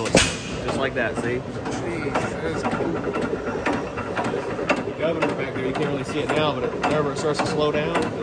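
An old engine runs with a steady rhythmic chugging.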